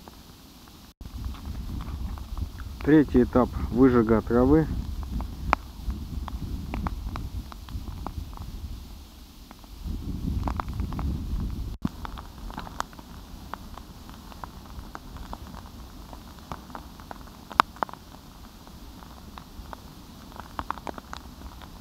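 Burning grass crackles and pops close by.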